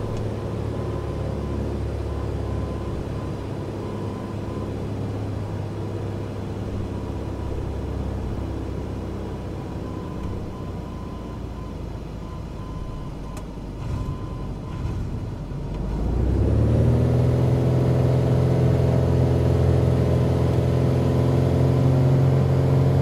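Tyres rumble on a runway.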